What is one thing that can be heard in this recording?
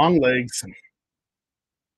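An adult man speaks briefly through an online call.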